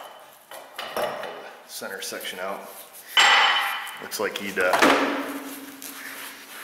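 Small metal parts clink as they are handled.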